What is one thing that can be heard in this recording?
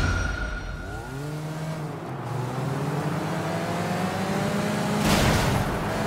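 A car engine revs hard and speeds up.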